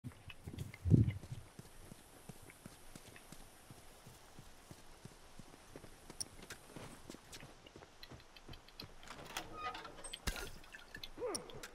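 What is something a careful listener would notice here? Footsteps crunch softly on dirt and floorboards.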